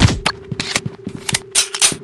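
A weapon reloads with metallic clicks.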